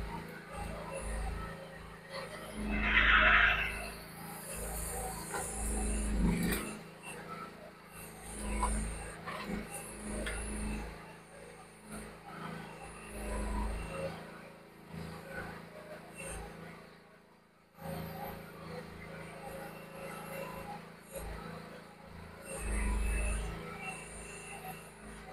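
Excavator hydraulics whine and strain in repeated surges.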